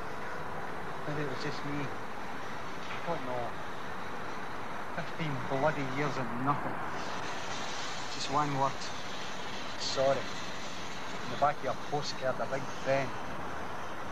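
A man speaks calmly nearby, in short phrases.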